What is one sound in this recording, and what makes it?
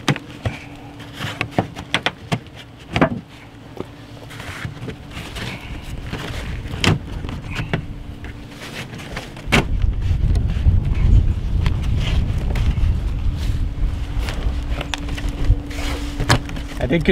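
Gloved hands knock and scrape against wooden eaves close by.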